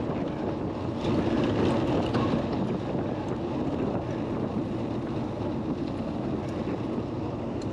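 Bicycle tyres rattle over cobblestones.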